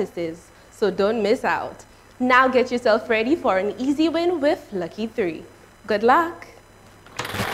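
A young woman speaks clearly and brightly into a microphone.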